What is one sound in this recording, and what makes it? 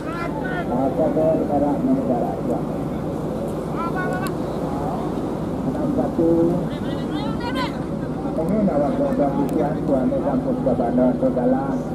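A crowd of men talk and call out to each other outdoors.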